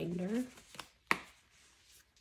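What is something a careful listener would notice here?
A snap fastener on a binder clicks shut.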